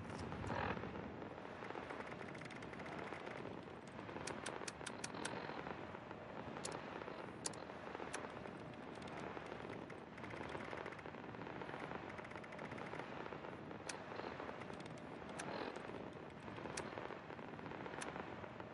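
Menu selections tick with short, sharp clicks.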